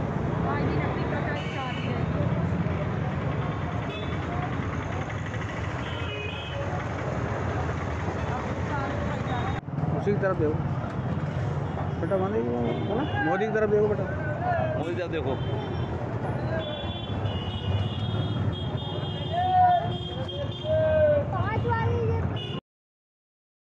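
A busy street market hums with crowd noise in the background.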